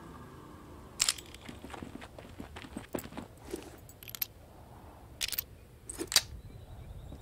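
A revolver's cylinder clicks and rattles as it is loaded.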